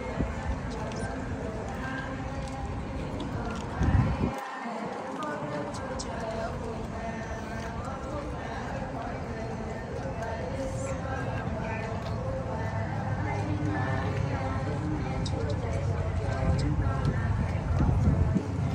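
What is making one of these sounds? Footsteps of many people shuffle on pavement.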